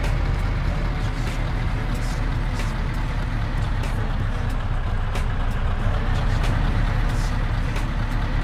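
A truck's diesel engine idles with a deep, steady rumble.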